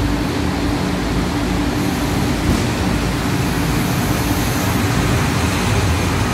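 A diesel train engine rumbles and hums steadily close by.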